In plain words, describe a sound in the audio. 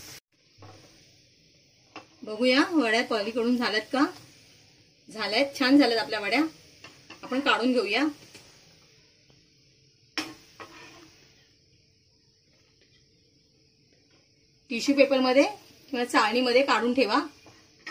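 A metal spatula scrapes and taps on a frying pan.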